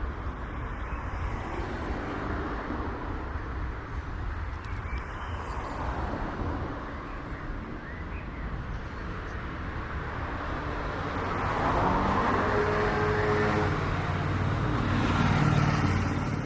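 Traffic rumbles by on a nearby road.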